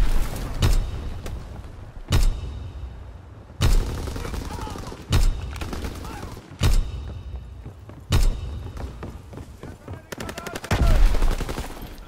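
Rifle shots boom loudly, one after another, with a rolling echo.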